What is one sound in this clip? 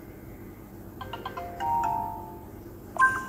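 A bright electronic chime rings out for a cleared level.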